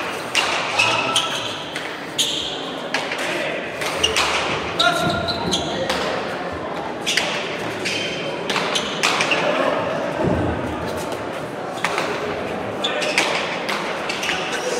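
Players' shoes squeak sharply on the floor.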